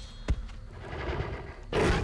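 A creature growls low and menacingly.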